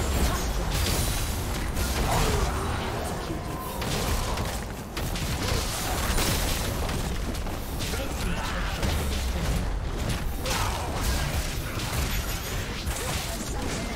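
Game spells and attacks clash and crackle in a busy battle.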